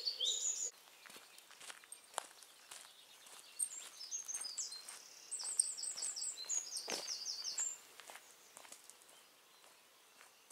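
Footsteps crunch on gravel and fade as a person walks away.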